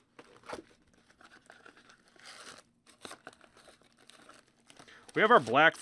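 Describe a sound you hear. Foil card packs rustle and crinkle.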